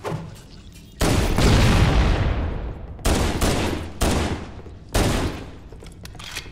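A gun fires loud blasts in bursts.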